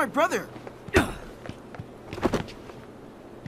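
A heavy body falls and lands with a thud.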